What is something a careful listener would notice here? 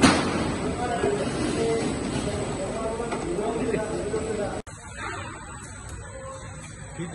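A conveyor chain rattles and hums steadily.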